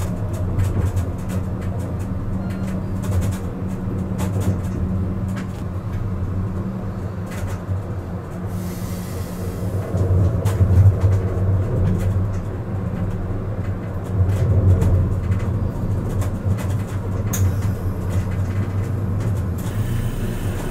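Tram wheels click and clatter over the rail joints.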